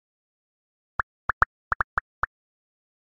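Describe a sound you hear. Short rising game blips chime in a quick run.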